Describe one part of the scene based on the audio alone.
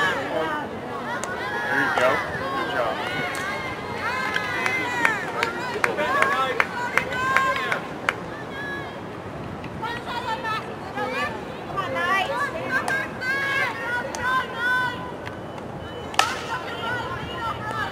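A group of adult spectators cheer and shout nearby.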